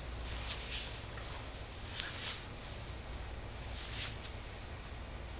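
Hands rub and knead against fabric with soft swishing sounds.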